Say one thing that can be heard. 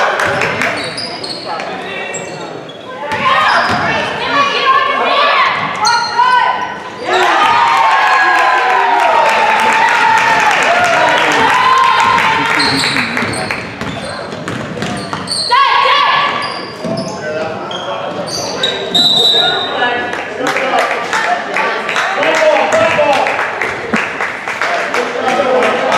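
Basketball shoes squeak sharply on the floor.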